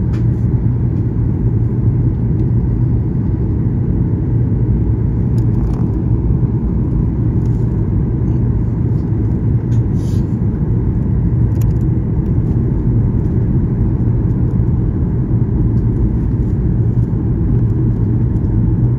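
An aircraft engine drones steadily with a low hum.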